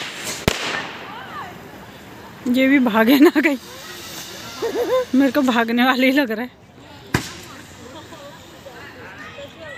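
A ground firework fizzes and sprays sparks close by.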